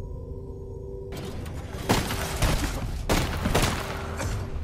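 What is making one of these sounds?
Heavy armour clanks as a figure kneels down on the ground.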